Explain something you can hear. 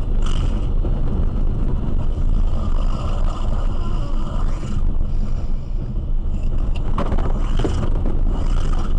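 A car's cabin rumbles as it drives along a highway.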